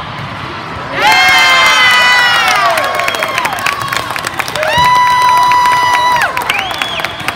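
Young women shout and cheer together loudly.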